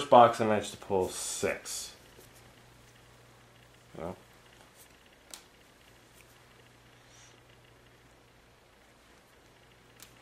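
Playing cards rustle and slide against each other as they are handled.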